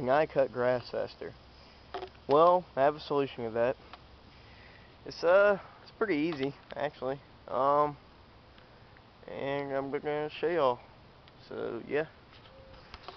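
A young man talks casually and close to the microphone.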